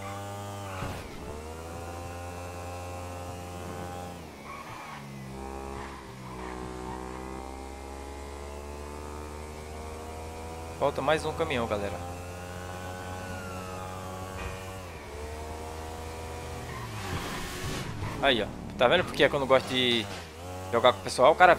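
A motorcycle engine hums steadily, rising and falling in pitch as it speeds up and slows.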